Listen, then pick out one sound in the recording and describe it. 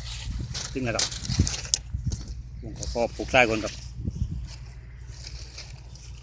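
Footsteps crunch on dry grass.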